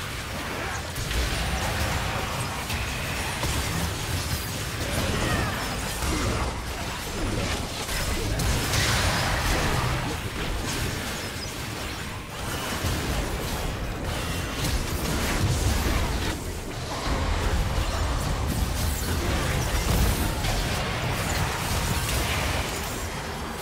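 Game spells crackle and boom during a fight.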